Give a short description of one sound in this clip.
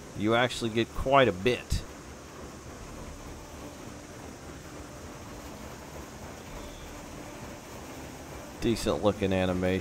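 A steam locomotive chugs along steadily.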